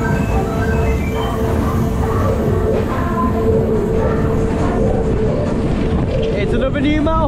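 Loud pop music plays from loudspeakers.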